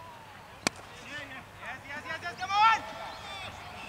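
Men on the field shout loudly from a distance.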